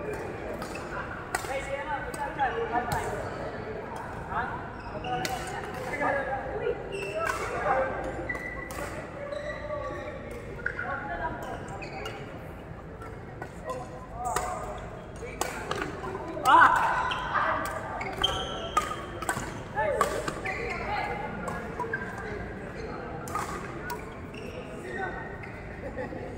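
Adults and children chat and call out in a large echoing hall.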